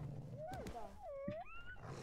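A wolf snarls with a rising and falling cry.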